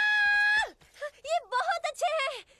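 A young woman squeals and shrieks in excited bursts.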